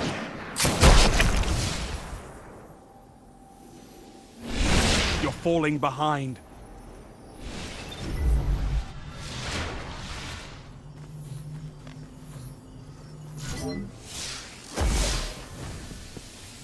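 Loud gunshots boom with a short ringing echo.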